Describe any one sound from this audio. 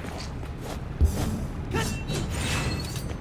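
A blade swooshes through the air.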